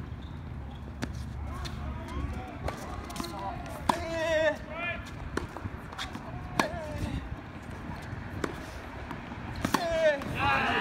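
A tennis racket strikes a ball with sharp, repeated pops.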